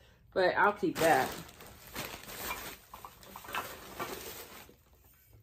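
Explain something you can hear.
Paper rustles as something is unwrapped.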